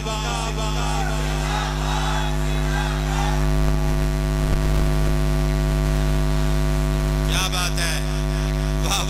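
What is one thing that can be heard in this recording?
A man preaches loudly and with fervour into a microphone.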